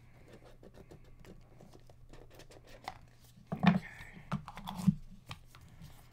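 A cardboard box slides open with soft scrapes and taps.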